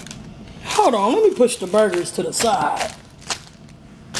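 A paper wrapper crinkles and rustles.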